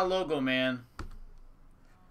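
A hard plastic card case is set down on a table.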